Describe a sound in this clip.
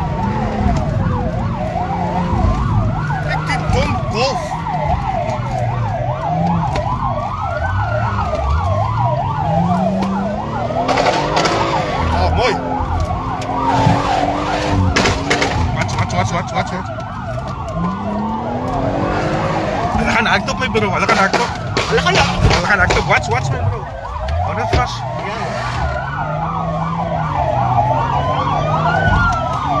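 Police sirens wail, rising and falling, close by.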